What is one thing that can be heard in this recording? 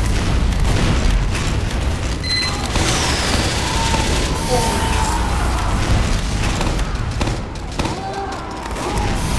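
A rocket launcher fires with a whooshing blast.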